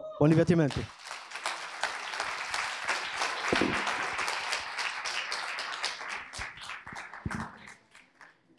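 A man speaks briefly through a microphone in a large echoing hall.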